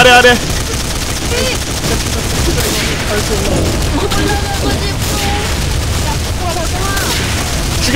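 Gunshots crack in bursts.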